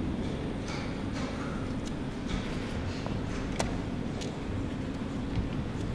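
A chess piece is set down on a wooden board with a soft knock.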